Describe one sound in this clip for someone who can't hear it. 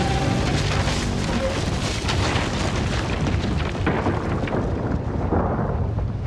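A loud explosion booms as rocks crash and scatter.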